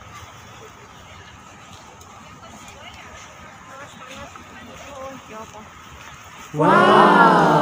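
Footsteps walk along a paved path outdoors.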